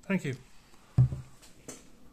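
A plastic bottle thumps down onto a table.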